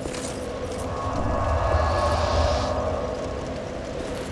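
A deep whooshing rumble swells and fades as a cloud of smoke bursts out.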